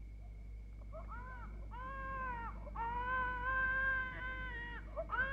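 A baby cries loudly nearby.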